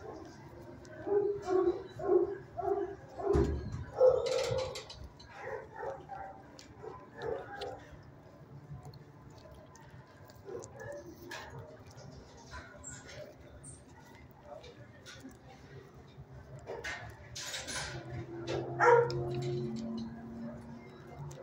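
A dog whines softly close by.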